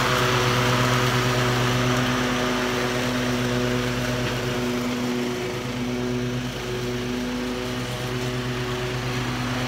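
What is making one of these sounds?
A zero-turn mower engine hums as it cuts grass and moves away.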